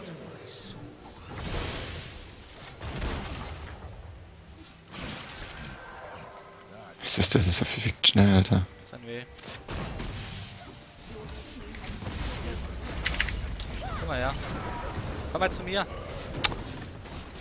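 Fantasy battle effects clash, whoosh and crackle in a fast fight.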